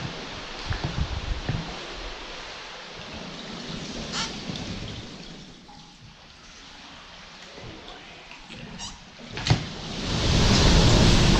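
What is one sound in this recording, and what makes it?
A paddle dips and splashes in calm water, echoing in a rocky cave.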